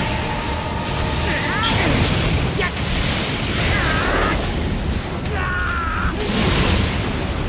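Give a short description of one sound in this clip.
Heavy rain falls steadily.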